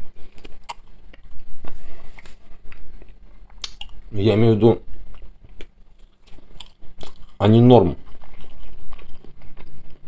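A man chews food with soft smacking sounds.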